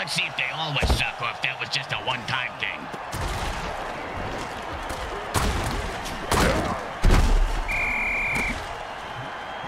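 A large stadium crowd roars.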